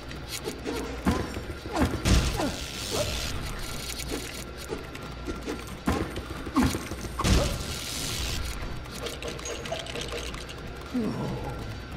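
Game objects smash apart with loud crashing bursts.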